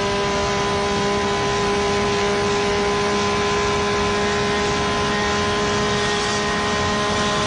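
A car engine drones steadily while driving.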